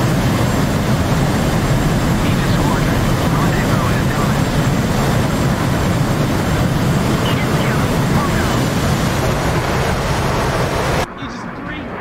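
A jet engine roars loudly and steadily.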